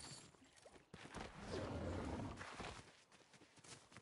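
An icy blast whooshes.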